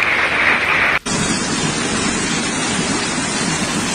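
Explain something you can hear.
Floodwater rushes and churns loudly.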